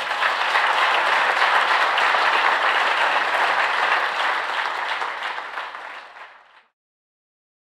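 A large audience applauds loudly in a hall, and the applause fades out.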